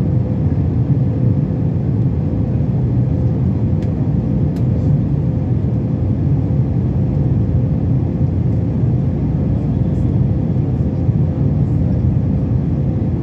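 Jet engines roar steadily inside an airplane cabin.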